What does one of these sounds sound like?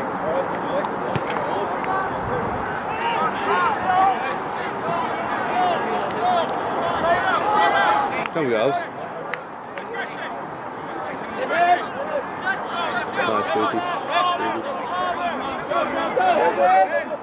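A crowd of spectators and players shouts and cheers outdoors.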